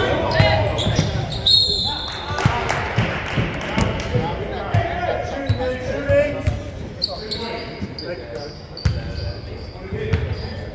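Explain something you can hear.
Young people shout and call out in a large echoing gym.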